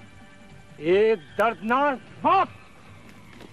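A man shouts loudly nearby.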